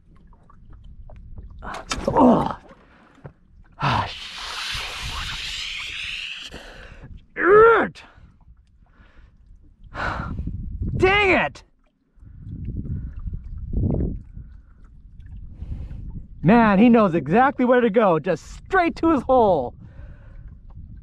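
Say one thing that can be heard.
Small waves lap against the side of a boat.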